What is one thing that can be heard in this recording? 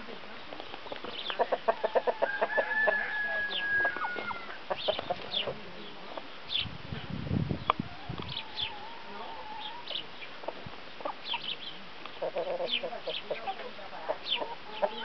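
Hens cluck and cackle close by.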